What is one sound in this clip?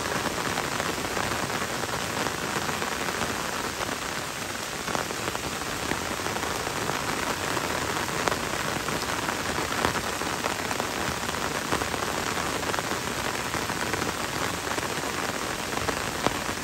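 Gentle rain patters on leaves and a wet road.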